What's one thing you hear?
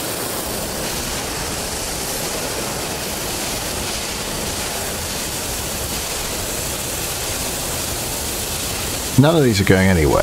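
A steam locomotive chugs along a track.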